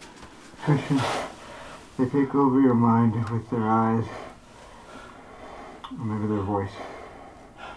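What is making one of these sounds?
A young man speaks in short, strained bursts.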